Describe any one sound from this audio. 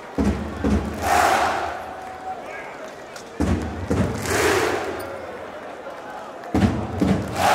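A large crowd claps in rhythm.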